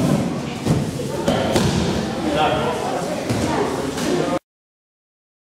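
Children and adults talk and call out in a large echoing hall.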